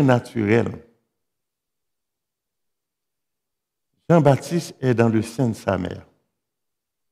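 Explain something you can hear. An elderly man speaks calmly through a microphone.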